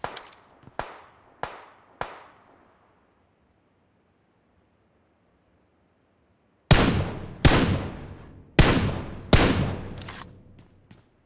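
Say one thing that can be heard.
Rifle shots crack one after another, with echoes trailing off.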